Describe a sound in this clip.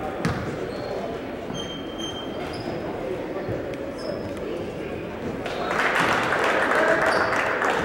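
A crowd in a large echoing gym murmurs and cheers.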